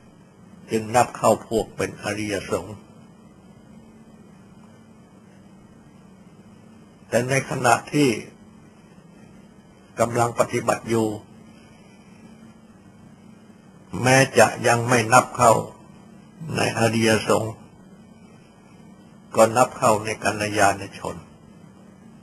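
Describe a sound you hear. An elderly man speaks calmly, in short phrases with pauses.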